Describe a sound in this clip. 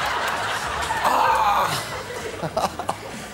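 Young girls giggle close by.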